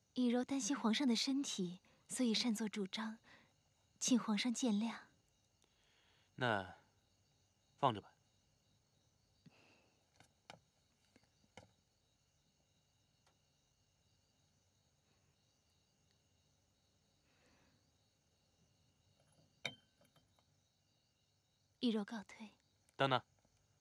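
A young woman speaks calmly and apologetically, close by.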